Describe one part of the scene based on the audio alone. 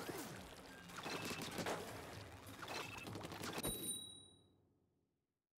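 Video game sound effects splash and whoosh, then fade to silence.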